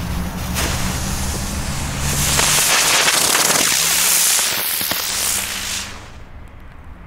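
A smoke firework hisses and sputters loudly.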